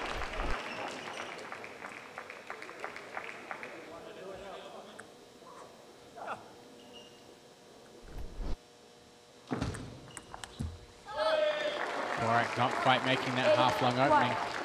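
A table tennis ball clicks quickly back and forth off paddles and a table.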